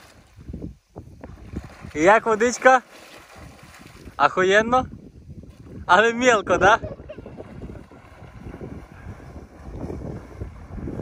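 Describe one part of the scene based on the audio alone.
A man splashes through water.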